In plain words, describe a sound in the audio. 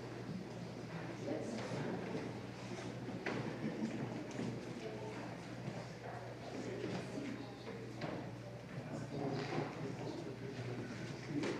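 Women's voices chant together, softly echoing in the room.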